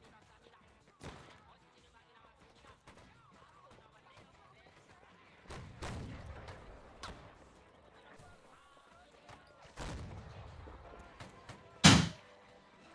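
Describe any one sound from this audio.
Musket shots crack and boom, some close and some further off.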